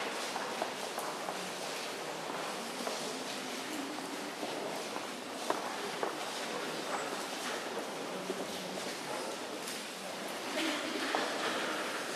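Footsteps shuffle slowly across a hard floor.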